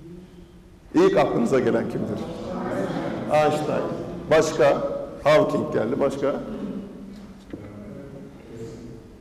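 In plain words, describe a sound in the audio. A man speaks with animation into a microphone in a room with some echo.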